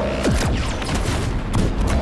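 A blast booms and crackles.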